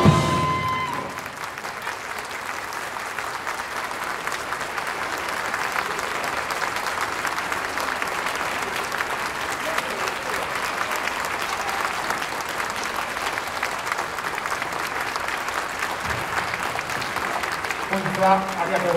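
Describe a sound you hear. A crowd applauds steadily.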